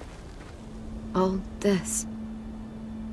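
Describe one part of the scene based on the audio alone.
A young man speaks casually.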